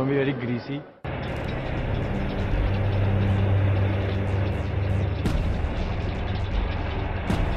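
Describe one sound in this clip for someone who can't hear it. A tank engine rumbles loudly.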